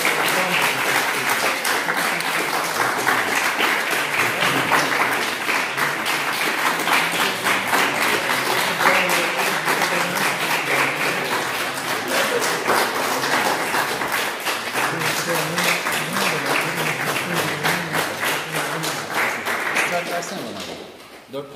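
A crowd claps steadily in a large echoing room.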